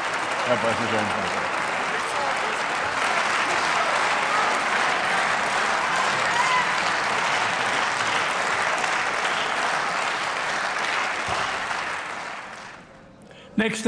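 A large crowd applauds in a big echoing hall.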